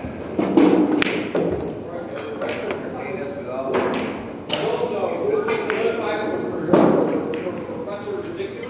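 Pool balls knock against each other and the table cushions.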